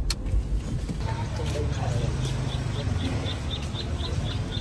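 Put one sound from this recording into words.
Young girls chatter quietly nearby.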